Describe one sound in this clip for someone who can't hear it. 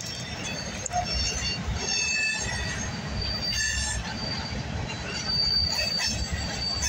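Train wheels squeal and screech against the rails.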